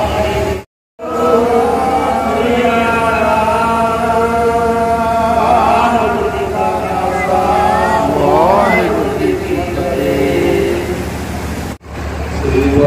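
A man chants through a microphone.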